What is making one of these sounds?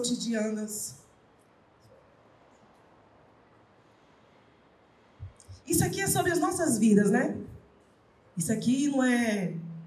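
A woman speaks emotionally into a microphone, pausing between phrases.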